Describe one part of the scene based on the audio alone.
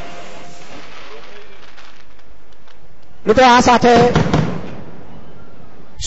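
Fireworks pop and crackle in the distance.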